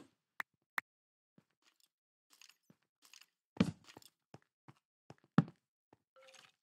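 Footsteps crunch softly on stone.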